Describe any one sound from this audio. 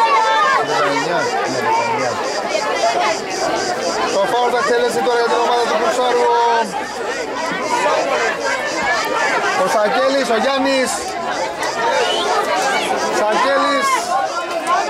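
A crowd of men and women chatter and call out loudly nearby, outdoors.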